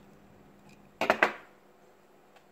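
A plastic piece snaps loudly into place.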